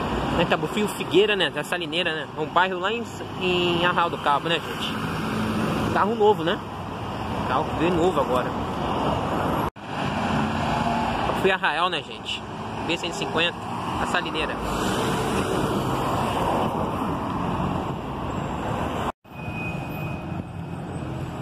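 A bus engine rumbles as the bus drives past close by.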